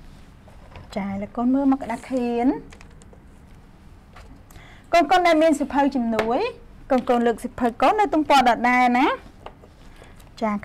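A young woman speaks clearly and slowly close to a microphone, pausing between phrases.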